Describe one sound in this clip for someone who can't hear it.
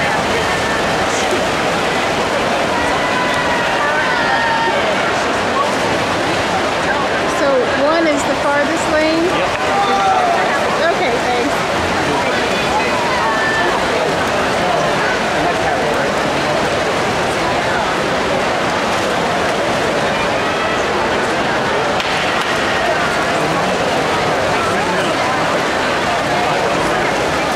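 Swimmers splash rapidly through water.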